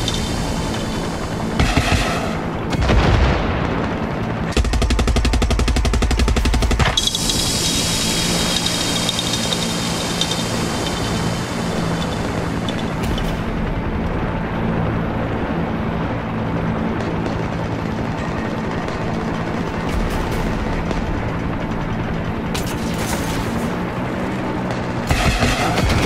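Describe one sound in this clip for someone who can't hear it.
A helicopter engine drones steadily with whirring rotor blades.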